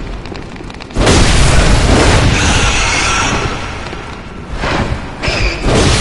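A creature snarls loudly.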